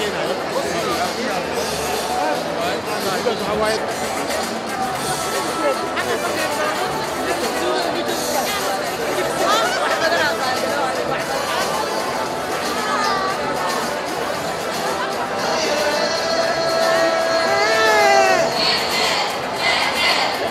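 A large crowd cheers and chatters loudly in an echoing hall.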